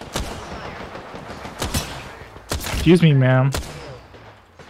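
Gunshots crack in short, sharp bursts.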